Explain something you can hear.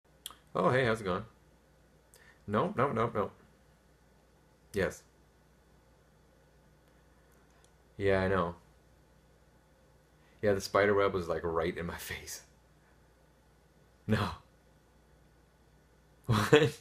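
A young man talks on a phone in short bursts, calmly and close by.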